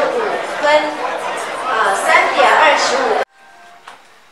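A crowd of men and women chatters loudly close by.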